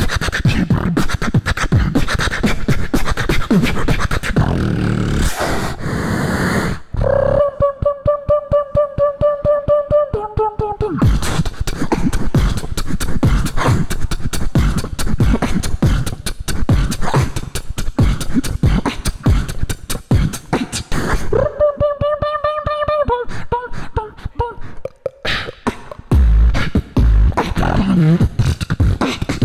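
A young man beatboxes fast, punchy rhythms into a microphone over loudspeakers in a large echoing hall.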